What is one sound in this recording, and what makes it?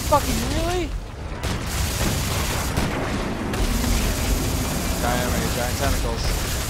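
A huge creature growls and roars with a deep rumble.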